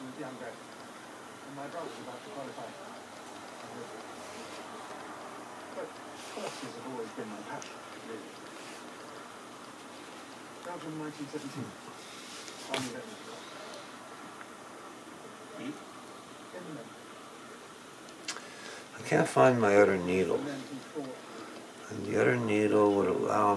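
Thin cord rustles softly as hands tie knots.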